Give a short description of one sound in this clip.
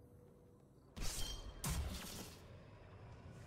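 A loud electric burst crackles and whooshes.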